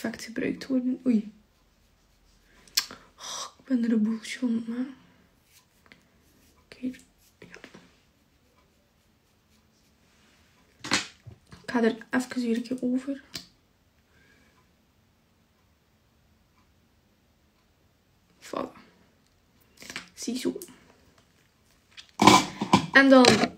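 A young woman talks casually and close up, in short bursts with pauses.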